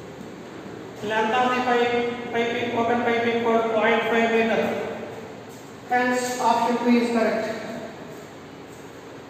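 A man speaks calmly and clearly nearby, explaining.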